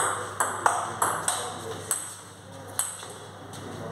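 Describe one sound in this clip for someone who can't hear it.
A table tennis ball clicks back and forth on a table and paddles.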